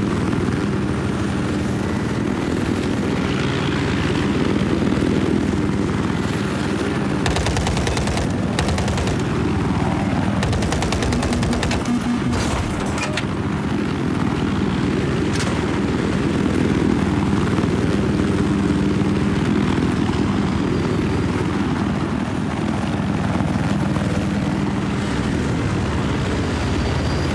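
A helicopter's rotor thumps steadily with a low engine drone.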